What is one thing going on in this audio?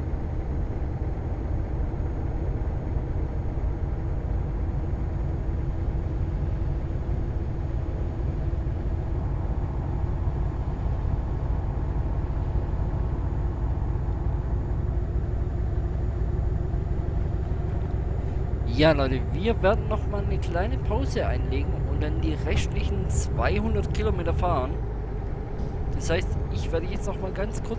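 A truck engine drones steadily.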